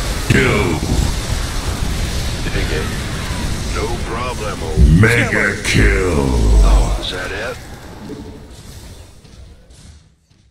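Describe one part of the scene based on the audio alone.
Rapid gunfire rattles in a battle.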